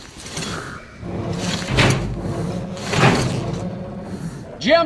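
A metal hatch creaks and scrapes as hands force it open.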